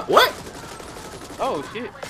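Guns fire in short bursts.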